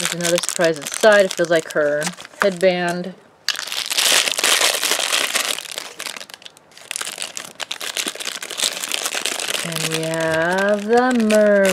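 A plastic foil wrapper crinkles and rustles.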